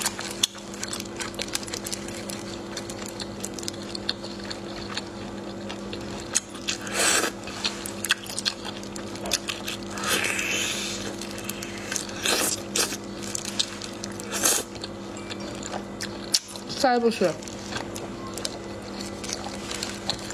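Gloved fingers squelch through shellfish in sauce.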